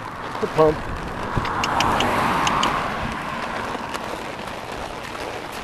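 A car drives past and fades away.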